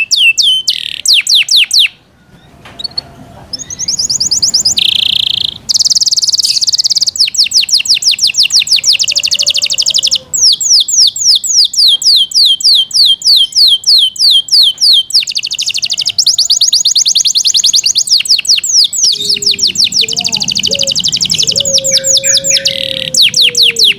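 A canary sings close by in fast, high trills and chirps.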